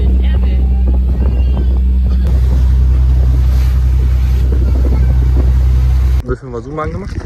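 Water splashes and rushes against a moving boat's hull.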